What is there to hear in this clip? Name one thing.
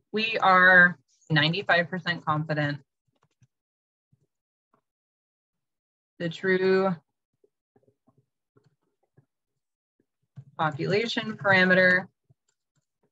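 A woman speaks slowly and calmly over an online call, pausing between phrases.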